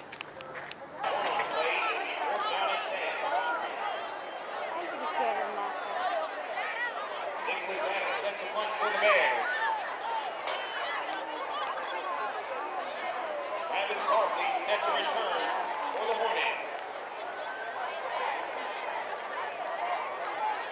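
A crowd of young women chatter and call out close by.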